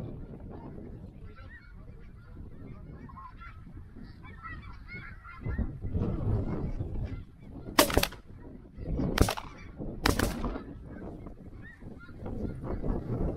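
Geese honk and call overhead.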